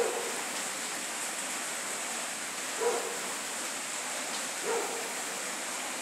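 Floodwater rushes and gurgles steadily outdoors.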